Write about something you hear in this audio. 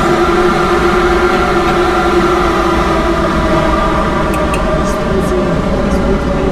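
Train wheels clatter softly on the rails.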